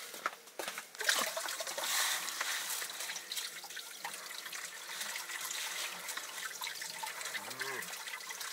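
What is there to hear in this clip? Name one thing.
Water pours and splashes into a bowl.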